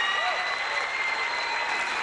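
A woman laughs with delight.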